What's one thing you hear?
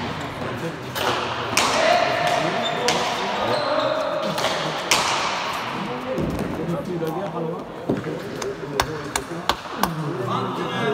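A ball smacks hard against walls and hands, echoing through a large hall.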